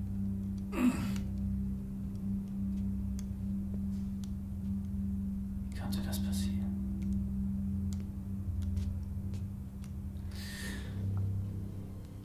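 A young man answers quietly, close by.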